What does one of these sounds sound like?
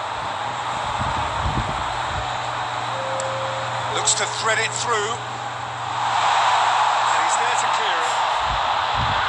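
A stadium crowd roars steadily, swelling louder near the end.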